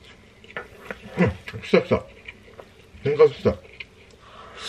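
A man makes short murmuring sounds with his mouth full.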